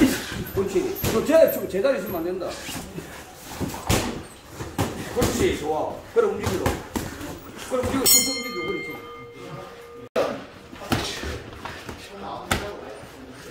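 Boxing gloves thud sharply against pads in quick bursts.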